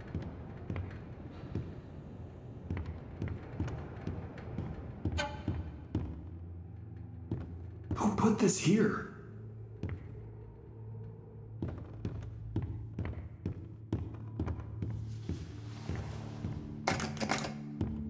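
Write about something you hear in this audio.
Footsteps thud on a wooden floor at a steady pace.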